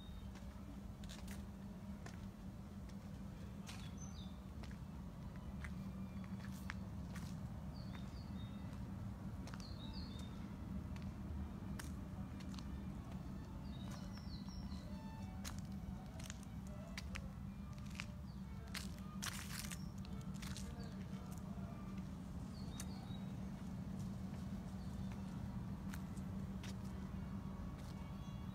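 Footsteps fall on a stone path outdoors.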